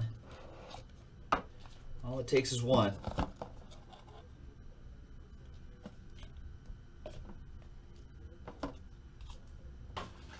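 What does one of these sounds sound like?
Plastic card cases click and knock as they are handled and opened.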